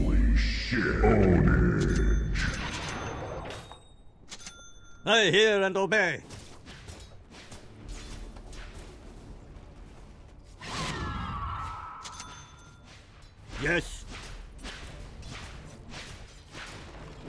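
Magical spell effects whoosh and chime.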